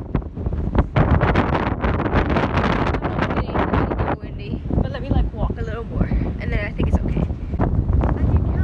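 A young woman talks and laughs close by, partly drowned by the wind.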